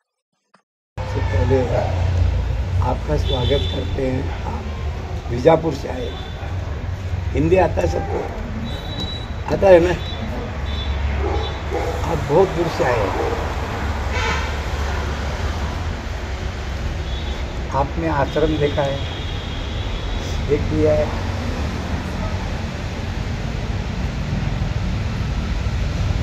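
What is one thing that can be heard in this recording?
A man speaks calmly into a microphone outdoors.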